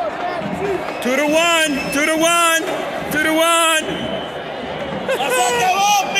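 A stadium crowd chants loudly in unison, in repeated bursts.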